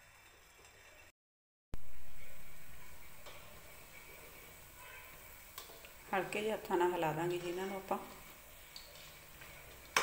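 Oil sizzles and bubbles steadily in a hot pan.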